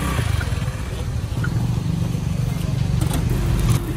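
A motorbike engine putters past nearby.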